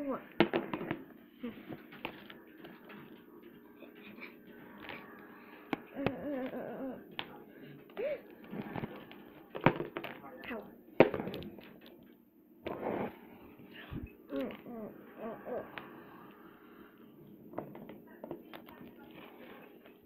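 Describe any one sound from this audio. Small plastic toy parts click and tap against a hard surface.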